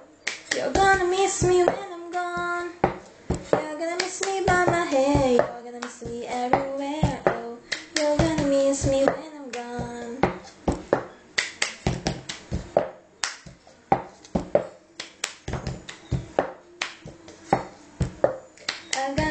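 Hands clap in rhythm.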